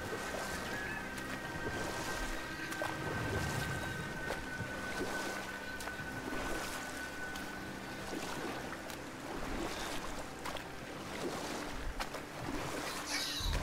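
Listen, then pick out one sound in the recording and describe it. Water ripples and laps against a boat's hull.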